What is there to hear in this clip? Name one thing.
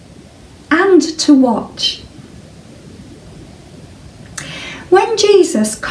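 A middle-aged woman speaks calmly and clearly, close by.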